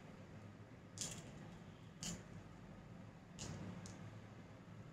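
Small shells click softly onto a table.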